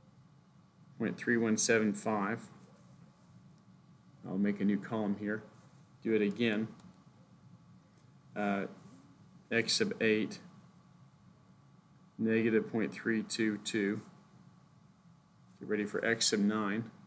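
A middle-aged man speaks calmly and explains into a nearby microphone, in short phrases with pauses.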